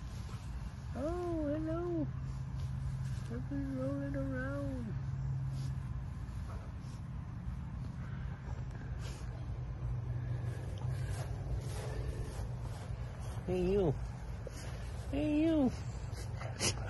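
A dog howls and groans in drawn-out cries.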